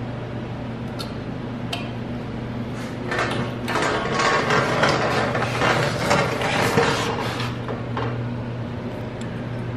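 Metal tools clink and scrape against each other.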